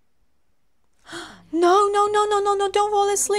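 A young woman speaks with animation, close to a microphone.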